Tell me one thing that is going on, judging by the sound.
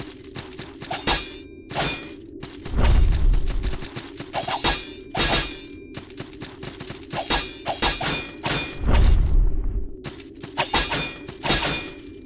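Sword slashes swish and strike in quick bursts.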